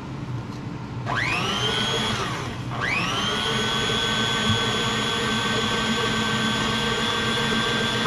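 An electric stand mixer whirs steadily as its whisk spins, pausing briefly and starting again.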